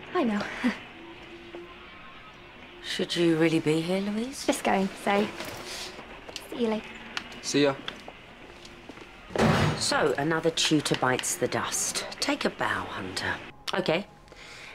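An older woman talks calmly nearby.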